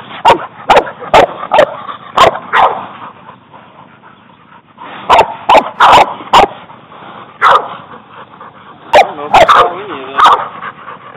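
A hound bays loudly and repeatedly close by.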